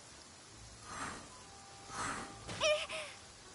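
A sword swings and strikes enemies.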